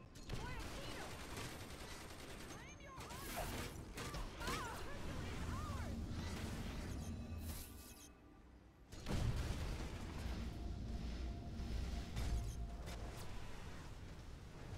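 Blows and impacts thud and crack in a fight.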